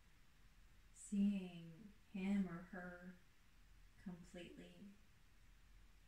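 A woman speaks softly and calmly.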